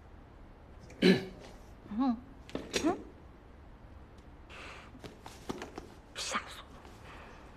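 A young woman speaks up close in a startled voice.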